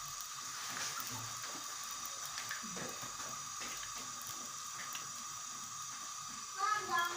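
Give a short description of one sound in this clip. Batter sizzles and crackles in hot oil.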